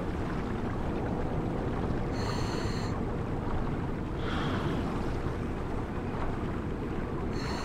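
Bubbles gurgle and rumble underwater, steady and muffled.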